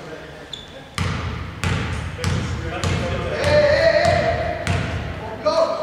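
A basketball is bounced on a hardwood court in a large echoing hall.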